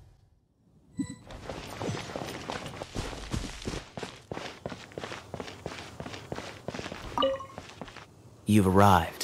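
Footsteps patter quickly on stone and grass.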